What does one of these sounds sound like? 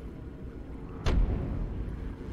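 A game menu opens with a short sharp sound.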